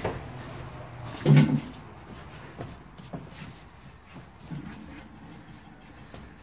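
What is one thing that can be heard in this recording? A seat thumps and scrapes as it is tipped forward.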